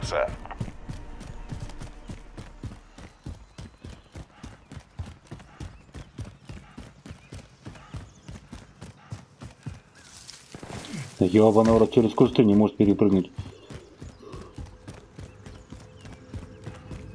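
Footsteps run quickly on hard ground.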